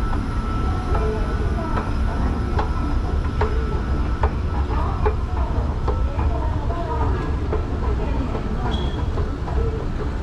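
An escalator hums and clicks steadily.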